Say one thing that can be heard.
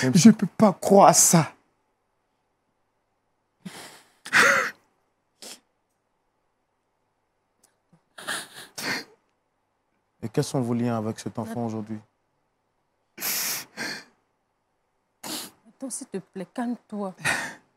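A man speaks with feeling into a microphone, pausing often.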